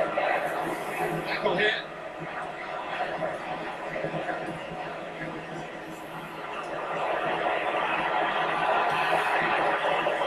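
A stadium crowd roars steadily through a small loudspeaker, swelling toward the end.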